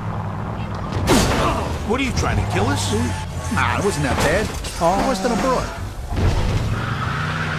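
A car crashes and scrapes along the road.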